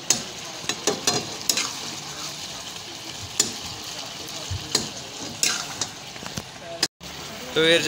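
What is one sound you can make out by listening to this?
Chicken pieces sizzle in hot oil in a wok.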